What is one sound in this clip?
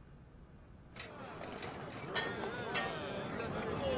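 A man shouts out loudly nearby.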